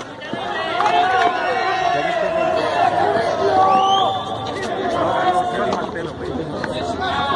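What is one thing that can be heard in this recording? A large crowd of men talks and shouts loudly outdoors.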